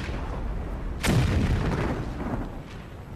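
A heavy gun fires with a loud, deep boom that rumbles away.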